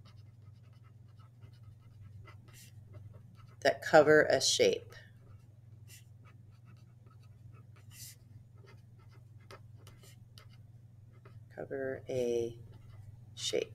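A pen scratches on paper as words are written.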